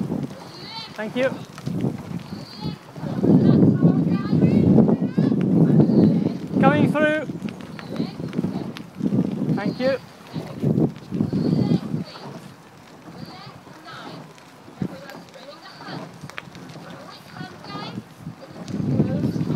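Wind gusts rumble loudly outdoors.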